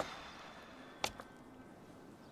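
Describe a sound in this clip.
A tennis racket clatters onto a tiled floor.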